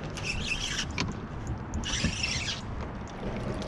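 A fishing reel whirs in short bursts.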